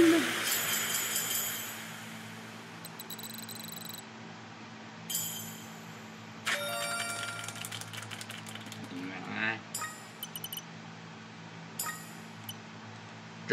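Bright electronic game jingles play.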